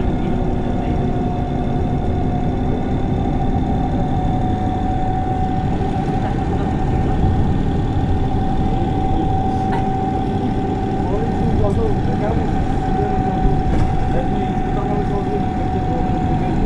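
A bus engine idles steadily nearby.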